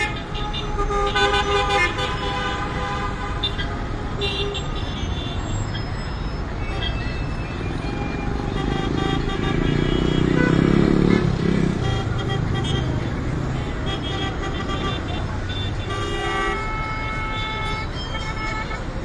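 Car horns honk repeatedly.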